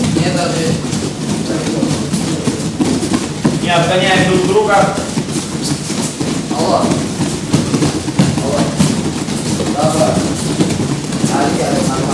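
Children's voices call out and chatter nearby.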